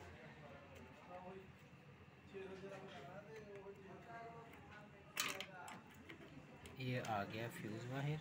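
A screwdriver scrapes and creaks as it turns a screw.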